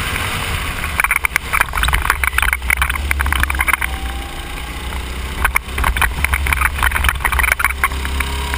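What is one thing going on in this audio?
Wind rushes and buffets loudly past a fast-moving kart.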